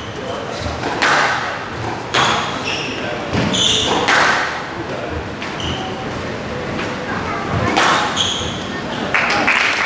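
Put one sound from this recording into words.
Rackets strike a squash ball.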